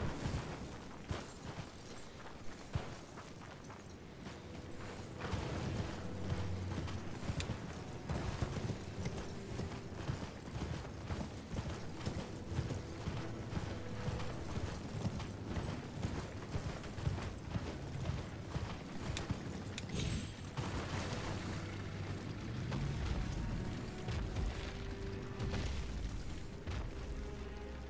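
A horse's hooves thud rapidly on the ground at a gallop.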